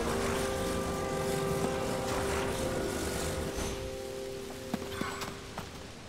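A magical beam hums steadily with a shimmering tone.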